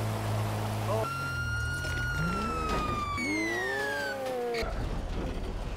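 A police siren wails and falls in pitch.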